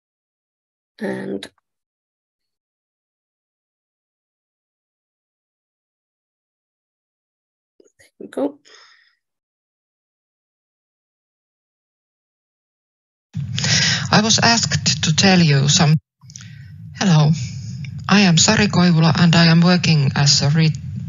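A woman speaks through an online call.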